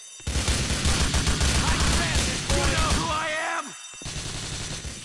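A rifle fires in rapid automatic bursts.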